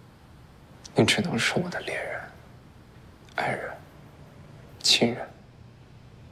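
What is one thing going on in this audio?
A young man speaks softly and slowly, close by.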